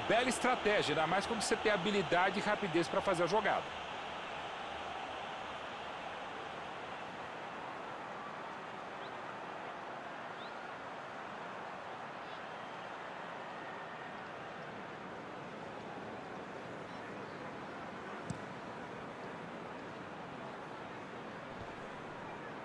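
A large stadium crowd murmurs and roars.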